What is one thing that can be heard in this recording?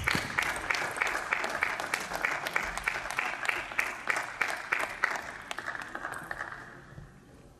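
A table tennis ball bounces quickly on a hard table.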